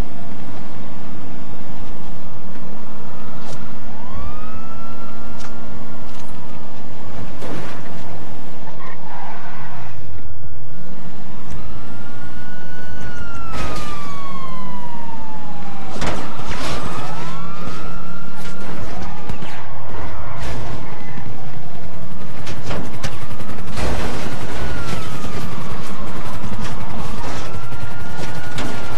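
A car engine hums and revs as a car drives along.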